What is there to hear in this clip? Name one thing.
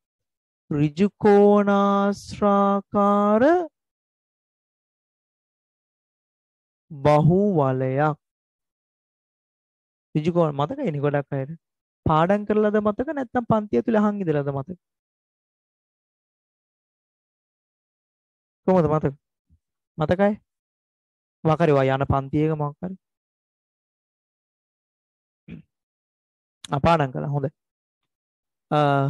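A man speaks with animation into a close headset microphone, in short bursts.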